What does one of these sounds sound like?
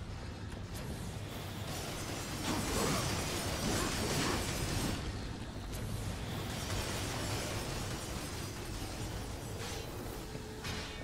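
A man talks casually through a headset microphone.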